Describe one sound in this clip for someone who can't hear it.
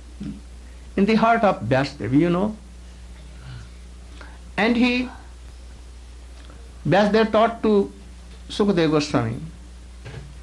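An elderly man speaks slowly and calmly into a microphone, in short phrases with pauses.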